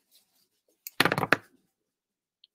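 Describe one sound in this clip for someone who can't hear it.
A plastic glue bottle is set down on a table with a knock.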